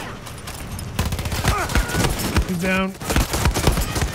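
A rifle fires in sharp, loud shots.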